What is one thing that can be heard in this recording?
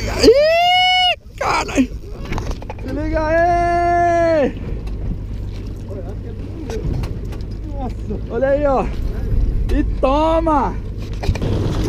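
A fishing reel's drag whines in sharp rising and falling bursts.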